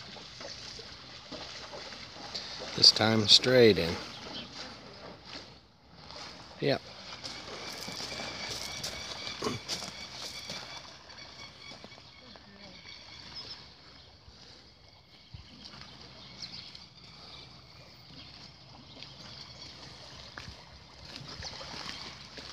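Water sloshes and splashes as a horse swims.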